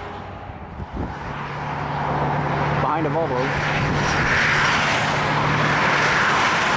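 A truck engine rumbles low and idles in nearby traffic.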